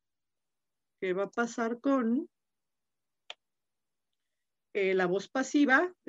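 A woman speaks calmly over an online call, in short phrases.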